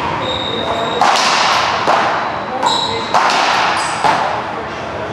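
A ball smacks sharply off paddles and a wall, echoing in a large hall.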